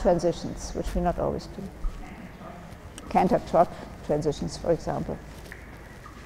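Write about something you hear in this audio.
A woman speaks over a loudspeaker in a large echoing hall.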